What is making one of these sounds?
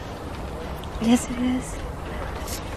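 A woman speaks warmly with a laugh, close by.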